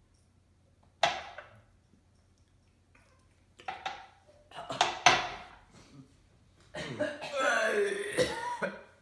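Teenage boys cough and gag after drinking.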